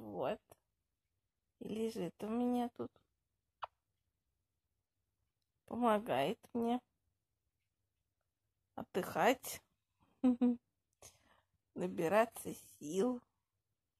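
A young woman speaks softly and close by, in short bursts with pauses.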